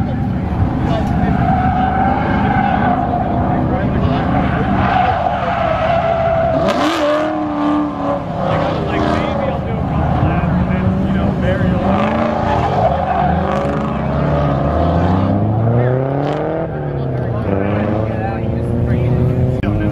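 Tyres squeal loudly as a car slides on pavement.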